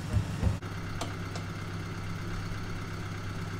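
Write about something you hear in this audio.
Metal clinks as a boat stand is adjusted.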